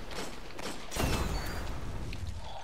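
A heavy gun fires with a loud, booming blast.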